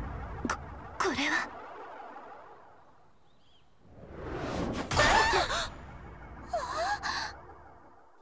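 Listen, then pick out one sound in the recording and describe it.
A young girl exclaims in surprise, close by.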